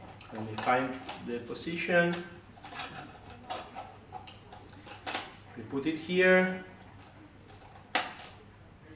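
A plastic part clicks and taps in a man's hands.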